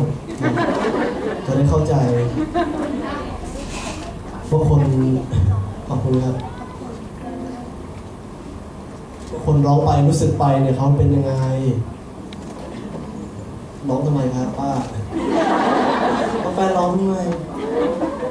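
A young man laughs into a microphone.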